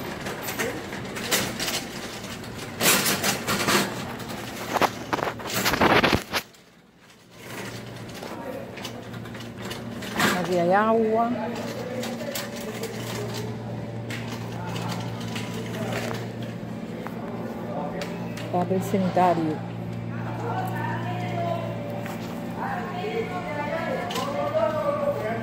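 A shopping cart rattles and clatters as it rolls over a hard floor.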